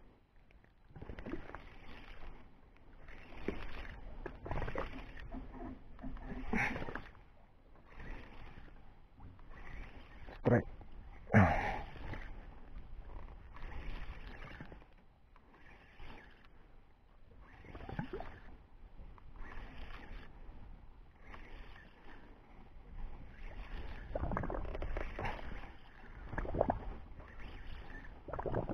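A fishing reel whirs as its handle is cranked in bursts.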